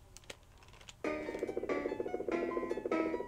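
Upbeat electronic game music plays.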